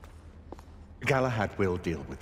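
An older man speaks calmly in a deep voice.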